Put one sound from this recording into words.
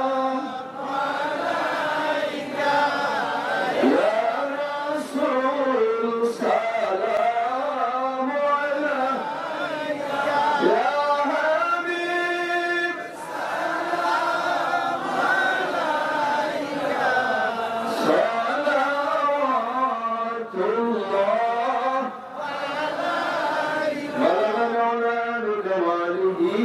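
A man chants loudly and melodically through a microphone and loudspeakers.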